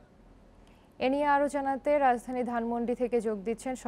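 A young woman reads out the news calmly into a microphone.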